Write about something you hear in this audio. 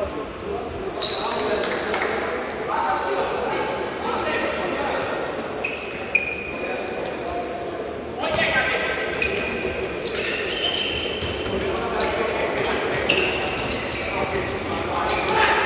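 Players' shoes squeak on an indoor court floor.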